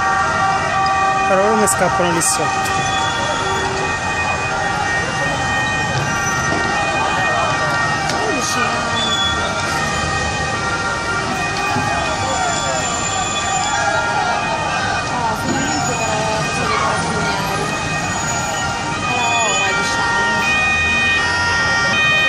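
A large crowd shouts and yells in the distance outdoors.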